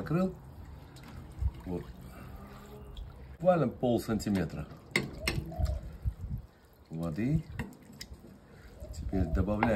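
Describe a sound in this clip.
A ladle scrapes and stirs in a pot.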